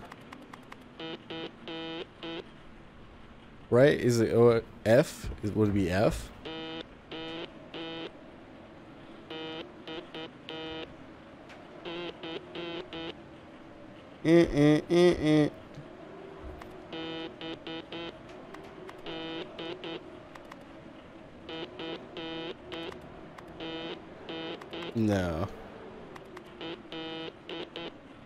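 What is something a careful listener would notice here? Short electronic beeps sound in quick bursts.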